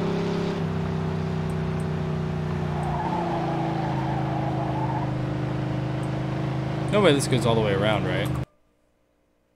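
A car engine hums steadily.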